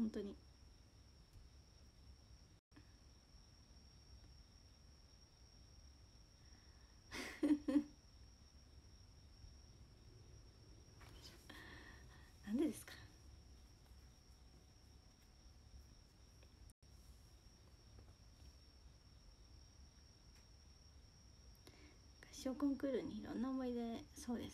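A young woman speaks softly and close by, with long pauses.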